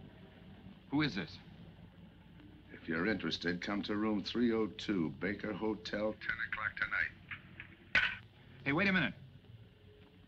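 A middle-aged man speaks tensely into a telephone nearby.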